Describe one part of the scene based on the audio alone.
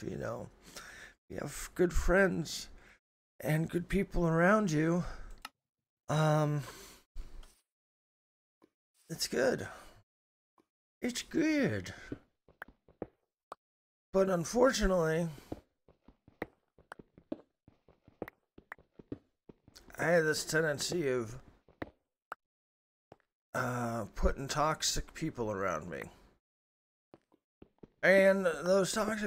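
A man talks with animation into a close microphone, pausing often.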